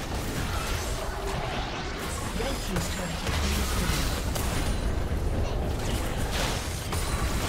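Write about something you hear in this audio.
Magic spells whoosh and crackle in a fast game battle.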